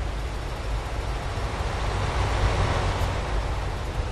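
A bus drives past close by, growing louder.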